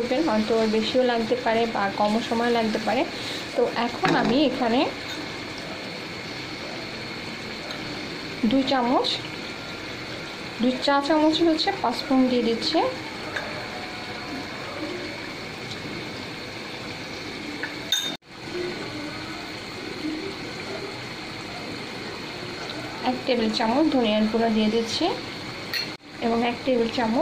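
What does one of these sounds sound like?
Food sizzles softly in a pan.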